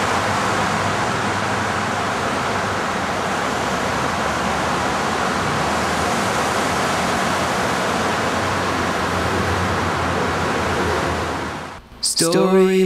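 Traffic roars steadily on a highway below.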